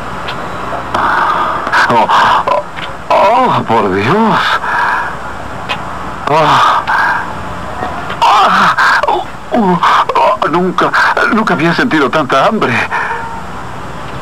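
A man sings loudly in a trembling, operatic voice.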